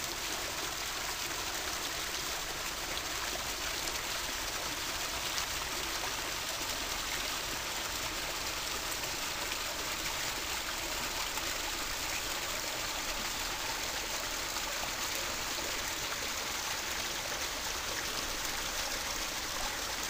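A small waterfall splashes steadily into a pond.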